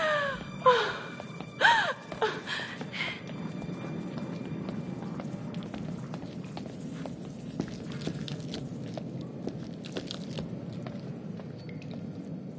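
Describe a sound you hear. A young woman's footsteps tread slowly across a hard, gritty floor.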